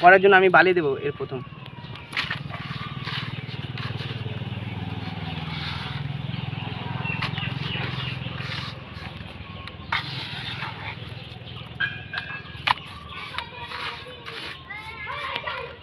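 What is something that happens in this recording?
Hands rub and crunch moist soil in a bucket.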